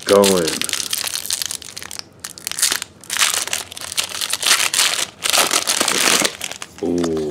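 A foil wrapper crinkles and tears as it is torn open.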